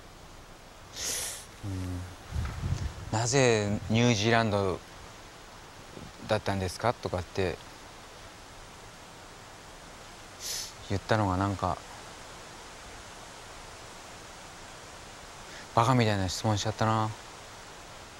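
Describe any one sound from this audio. A man speaks calmly and slowly nearby, with long pauses.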